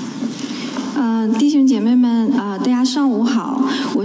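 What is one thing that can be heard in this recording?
A young woman speaks through a microphone in an echoing hall.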